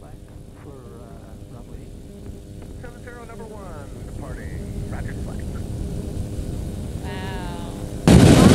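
A man talks through a headset intercom.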